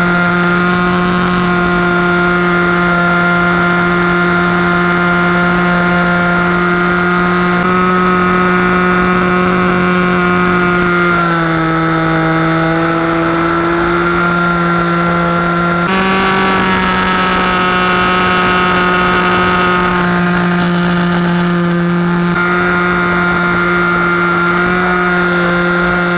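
A small model plane's engine drones loudly and steadily, its pitch shifting as the plane loops and rolls.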